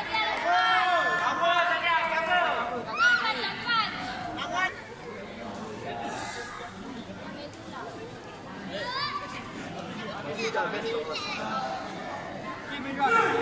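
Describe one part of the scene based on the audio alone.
Young voices shout and cheer in a large echoing hall.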